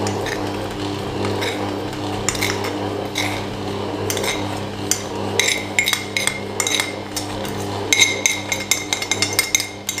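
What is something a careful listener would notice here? Flour pours into a spinning bowl.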